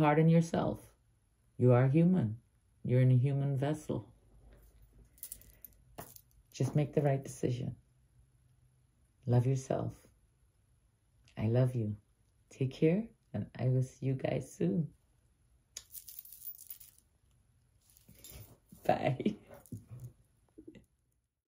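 An older woman talks warmly and calmly, close by.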